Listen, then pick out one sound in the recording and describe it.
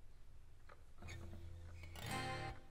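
A woman strums an acoustic guitar.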